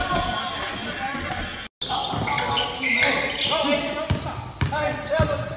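A basketball bounces on a hard gym floor.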